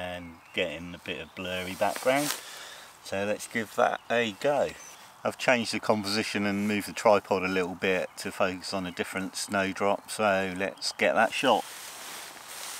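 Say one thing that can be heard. A middle-aged man talks calmly and close to a microphone, outdoors.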